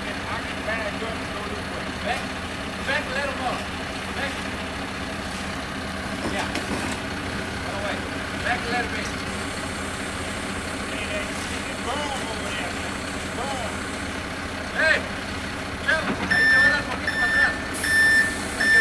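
Wet concrete slides and splashes down a chute.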